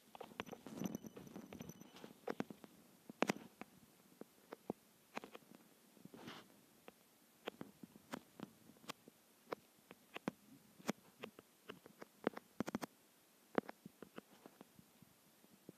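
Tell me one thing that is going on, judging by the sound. Blocks are placed with short, soft knocks, one after another.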